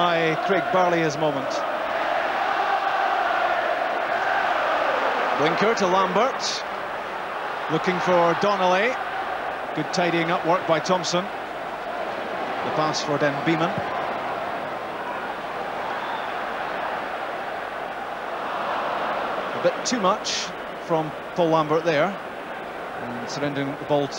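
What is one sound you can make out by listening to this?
A large stadium crowd roars steadily outdoors.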